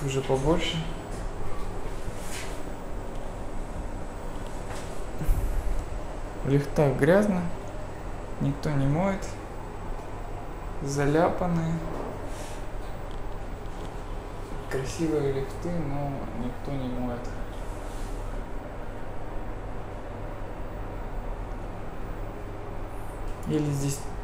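A lift car hums low and steadily.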